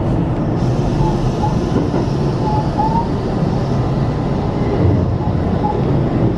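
Train wheels squeal faintly on curving track.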